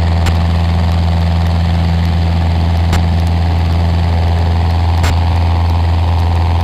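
A small plane's engine drones loudly and steadily.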